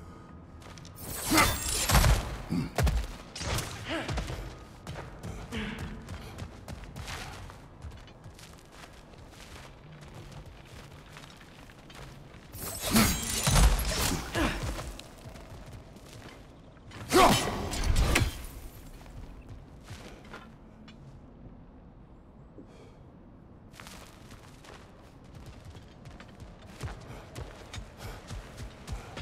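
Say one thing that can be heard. Heavy footsteps crunch on stone and dirt.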